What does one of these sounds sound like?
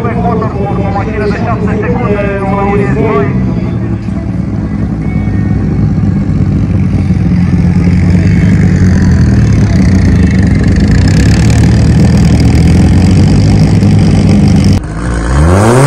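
A race car engine roars loudly as the car drives closer.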